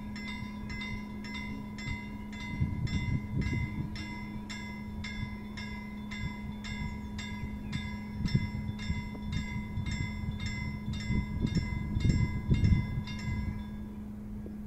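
A level crossing bell rings rapidly and steadily.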